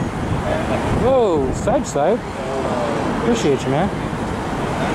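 A man talks outdoors, with street noise around him.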